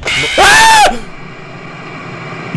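Loud static hisses and crackles.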